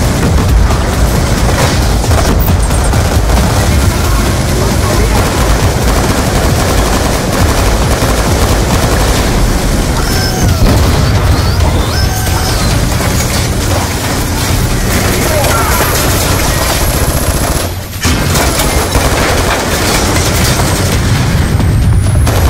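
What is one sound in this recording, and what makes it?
Gunfire crackles and bangs in rapid bursts.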